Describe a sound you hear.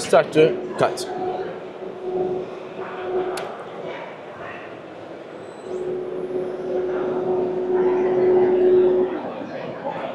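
A machine hums with a steady whine that stops and starts again.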